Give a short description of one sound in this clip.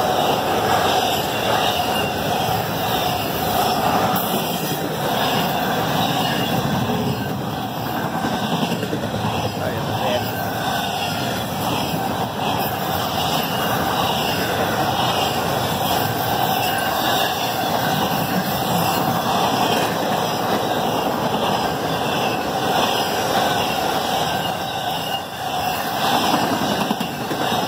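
A long freight train rumbles past close by, its wheels clattering rhythmically over the rails.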